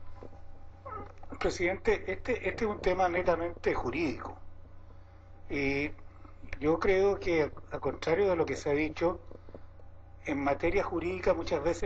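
An elderly man speaks steadily into a microphone.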